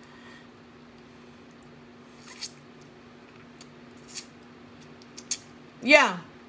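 A woman sucks and smacks her lips while eating.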